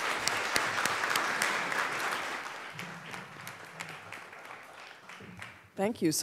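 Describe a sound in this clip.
An audience applauds in a large hall, and the clapping slowly fades.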